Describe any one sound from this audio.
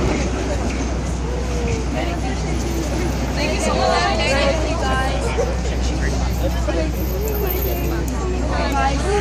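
A crowd of young people chatters close by outdoors.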